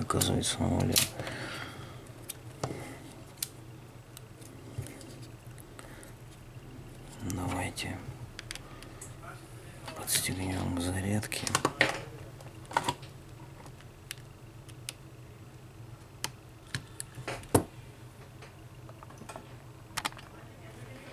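Plastic parts click and tap as a phone is handled and opened.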